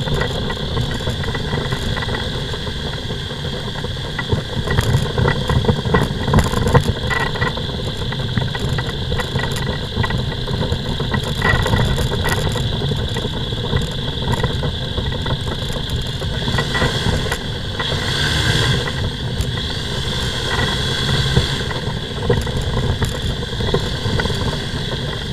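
Small wheels rumble over tarmac.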